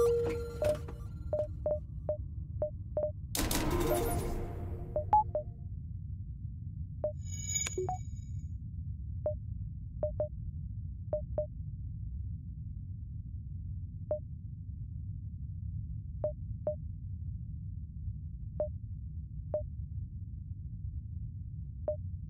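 Short soft electronic blips sound again and again as menu buttons are clicked.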